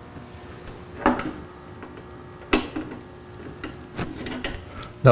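Pliers snip and click against metal.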